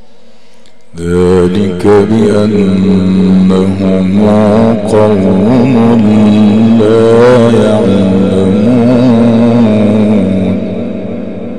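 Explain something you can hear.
A man chants loudly and melodically through a microphone and loudspeakers.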